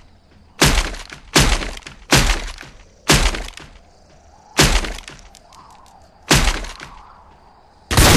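A shotgun is pumped with a sharp clack after each shot.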